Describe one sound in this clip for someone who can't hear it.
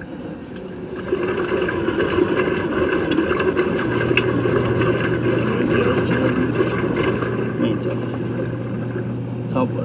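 Water splashes into a washing machine.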